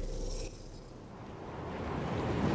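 Wind rushes past during a fall through the air.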